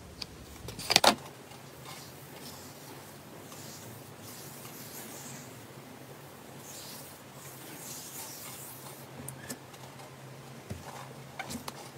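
Hands pat and press soft slime.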